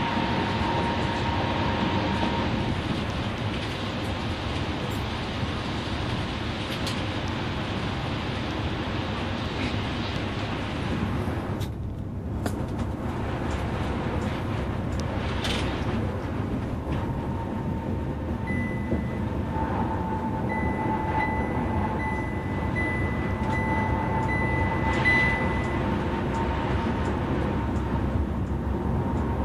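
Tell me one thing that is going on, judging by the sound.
A bus engine drones steadily.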